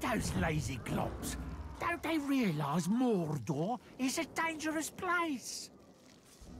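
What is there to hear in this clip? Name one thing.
A gruff male voice speaks with menace.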